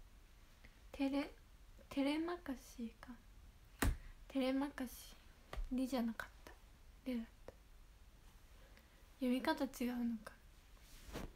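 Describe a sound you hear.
A young woman speaks softly and calmly close to a microphone.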